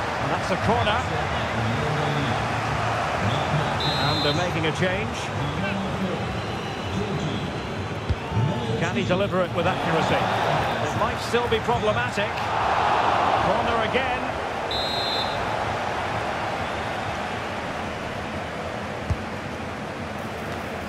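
A stadium crowd roars and cheers throughout.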